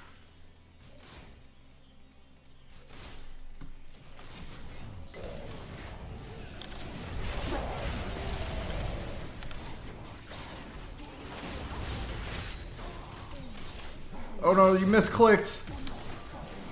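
Game spells and hits crackle and boom during a fight.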